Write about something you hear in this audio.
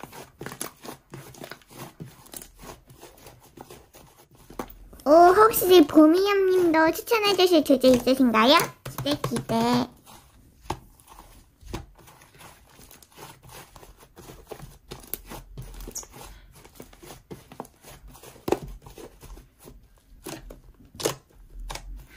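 Hands squish and squeeze soft foamy slime, making small crackling pops.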